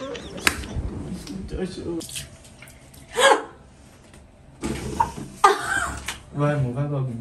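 A young woman talks and laughs close by.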